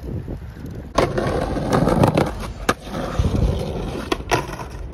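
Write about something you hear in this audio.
A skateboard clacks against the ground.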